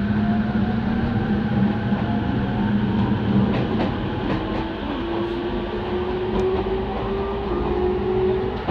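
Train wheels rumble and click over rails.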